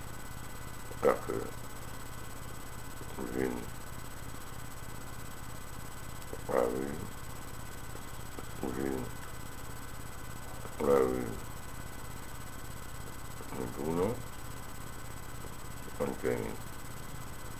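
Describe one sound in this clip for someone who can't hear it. An elderly man hums or murmurs in short bursts close by.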